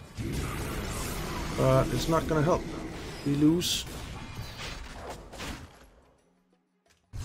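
Game spells crackle and clash in battle.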